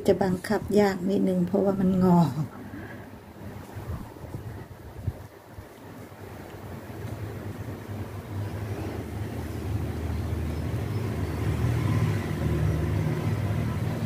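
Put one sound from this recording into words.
Yarn rustles softly as it is pulled and worked with a crochet hook.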